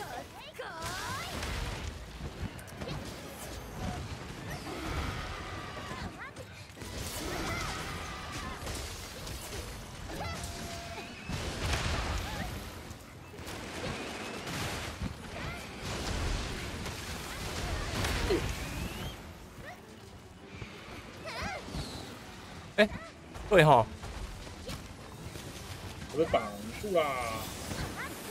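Blades clang and slash against a monster's hide.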